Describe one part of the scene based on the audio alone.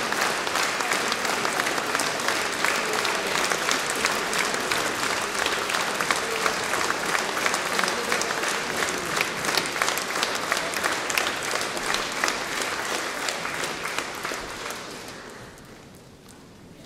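An audience claps steadily in a large echoing hall, then the applause fades away.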